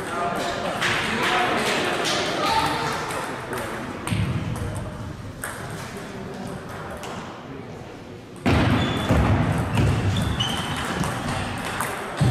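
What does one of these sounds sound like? Table tennis balls tick and clack off paddles and tables in a large echoing hall.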